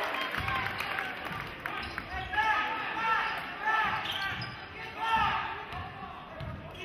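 A basketball thumps as it is dribbled.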